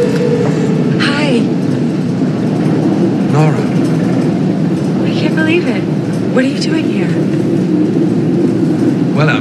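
A young woman talks and laughs with animation close by.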